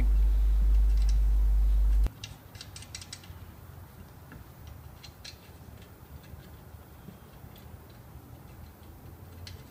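Wheel nuts click and scrape as they are screwed on by hand.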